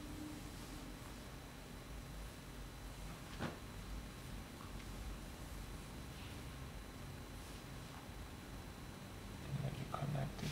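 A marker pen squeaks and scratches softly on paper.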